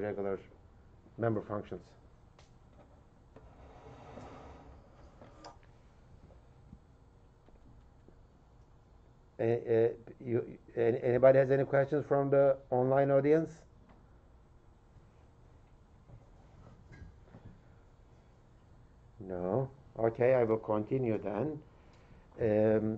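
A middle-aged man lectures calmly through a microphone, in bursts with pauses.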